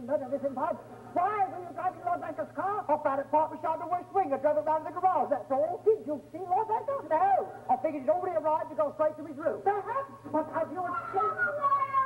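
An elderly woman sings on a stage.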